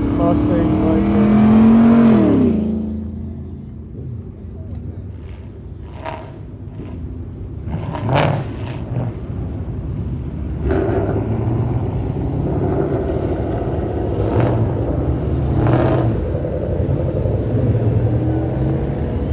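Cars drive past with a steady low engine rumble and tyre noise.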